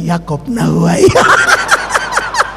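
A middle-aged man laughs heartily into a microphone.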